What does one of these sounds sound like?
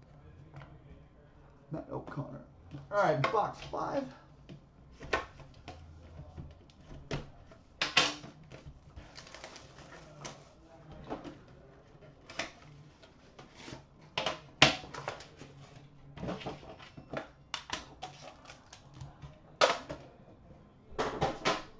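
Cardboard boxes knock and scrape as they are handled.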